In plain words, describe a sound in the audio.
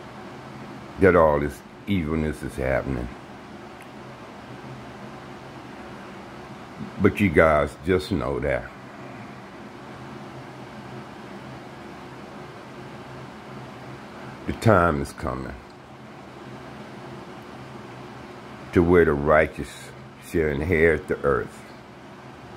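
An elderly man speaks close to the microphone in short, slow bursts with long pauses.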